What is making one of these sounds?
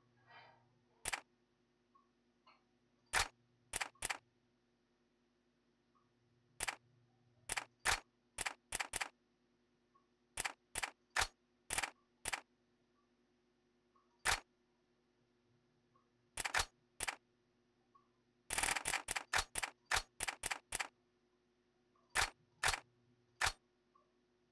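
Short electronic menu clicks sound one after another.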